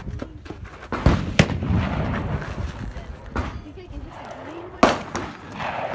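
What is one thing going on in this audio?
Rifle shots crack loudly outdoors, one at a time.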